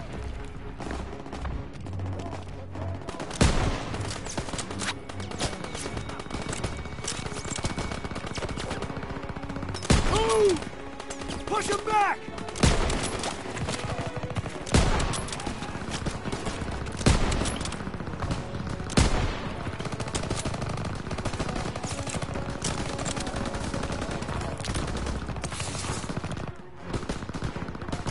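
Gunfire crackles and booms in bursts.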